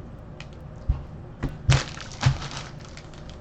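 Cards tap onto a table.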